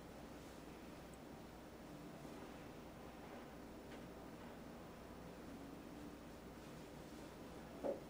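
A paintbrush brushes softly across a canvas.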